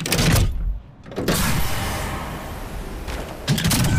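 A heavy metal hatch clunks and hisses open.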